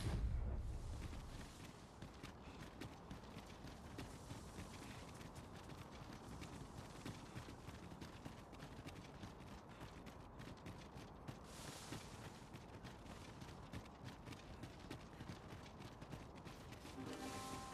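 Footsteps crunch on gravel and stone at a steady pace.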